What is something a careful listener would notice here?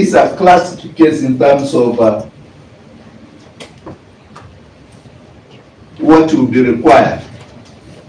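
A man speaks formally into a microphone, in short phrases with pauses.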